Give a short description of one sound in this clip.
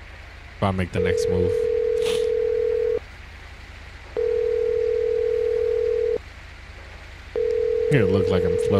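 A phone rings in long, steady tones through a handset.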